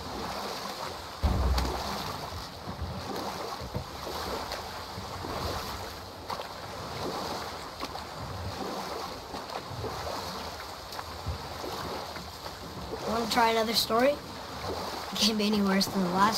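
Oars dip and pull through water.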